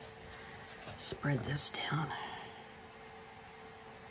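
A plastic scraper scrapes along the edge of a board.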